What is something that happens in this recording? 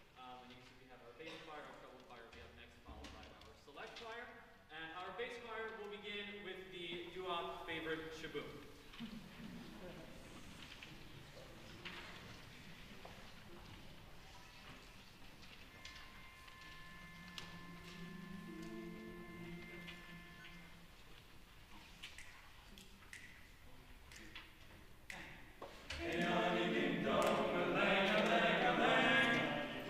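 A choir of men and women sings together in a large echoing hall.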